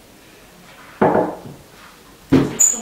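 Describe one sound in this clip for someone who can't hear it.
A glass knocks on a wooden table.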